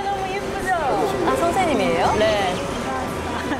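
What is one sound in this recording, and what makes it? A young woman laughs happily.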